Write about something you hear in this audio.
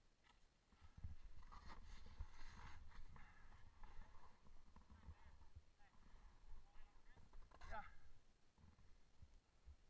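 A snowboard scrapes and hisses over snow.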